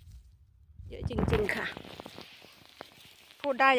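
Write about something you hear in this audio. Paper crinkles as mushrooms drop into a bag.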